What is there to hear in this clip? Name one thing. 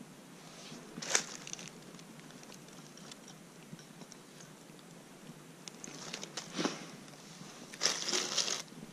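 Sticks of wood knock and clatter as they are set down.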